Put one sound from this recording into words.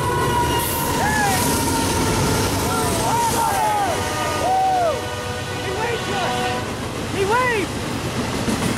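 Train wheels squeal in short, high bursts.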